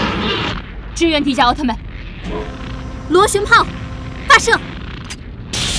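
A young woman shouts with urgency.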